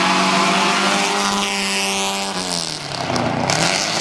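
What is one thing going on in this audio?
A racing car roars past close by, its pitch dropping as it goes.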